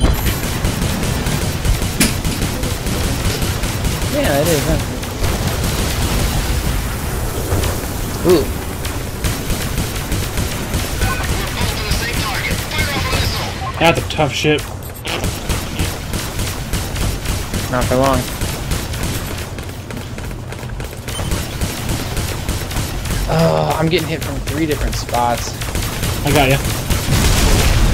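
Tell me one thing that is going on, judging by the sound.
Laser guns fire in short bursts.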